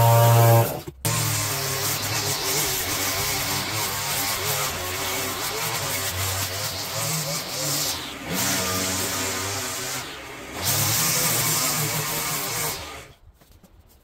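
A petrol string trimmer whines steadily, cutting grass.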